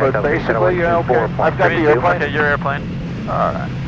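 A young man speaks calmly through a headset microphone.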